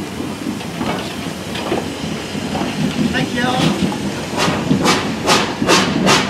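A steam locomotive rumbles past close by.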